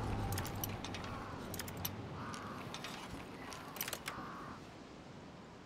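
Metal lock picks scrape and click inside a lock.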